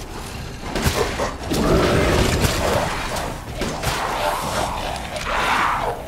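A gun fires loud shots.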